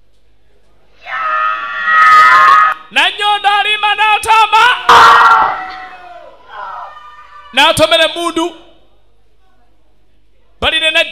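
Young women shout and scream loudly, close by.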